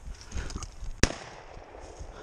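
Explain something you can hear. A shotgun fires a single loud shot.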